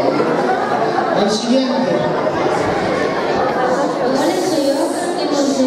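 Saxophones play together.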